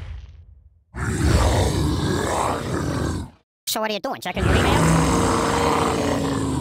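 A cartoon dinosaur roars.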